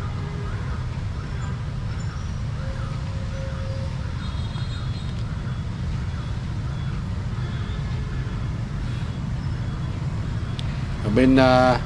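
Many motorbike engines rumble and idle close by in traffic.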